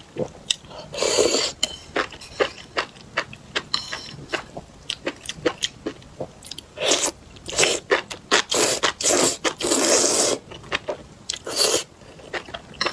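A young woman slurps noodles loudly, close up.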